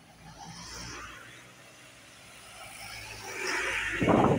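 A diesel bus approaches on a wet road and passes close by.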